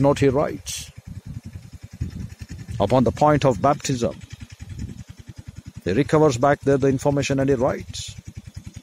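A middle-aged man speaks close to a phone microphone in short bursts.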